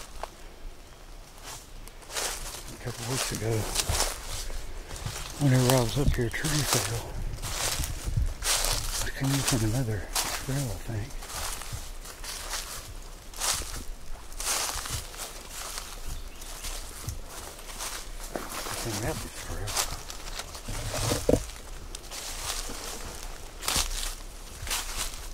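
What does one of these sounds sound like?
Footsteps crunch on dry leaves underfoot.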